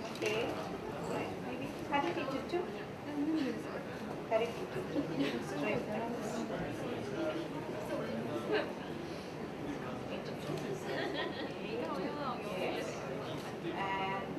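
Several women talk and chat nearby.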